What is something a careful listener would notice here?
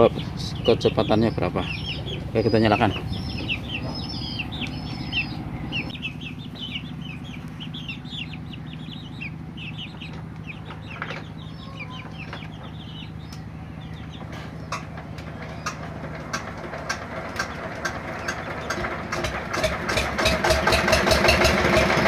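A machine motor hums and whirs steadily with belts spinning.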